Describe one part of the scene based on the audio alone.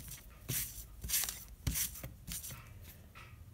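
A hand rubs across a sheet of glass.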